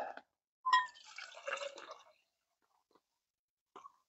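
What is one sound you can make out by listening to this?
Water pours into a cup.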